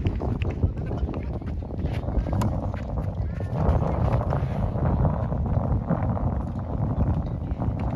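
Tennis balls are struck with rackets in a rally.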